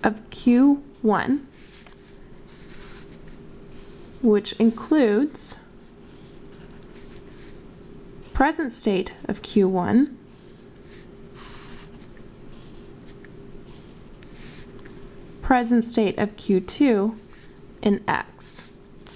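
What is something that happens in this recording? A felt-tip marker squeaks and scratches across paper.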